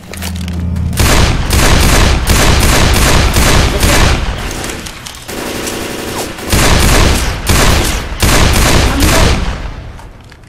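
Pistol shots bang rapidly, one after another.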